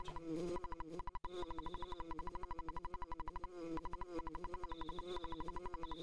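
Soft electronic game music plays steadily.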